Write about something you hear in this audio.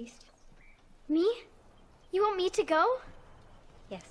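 A young girl answers with a questioning voice, close by.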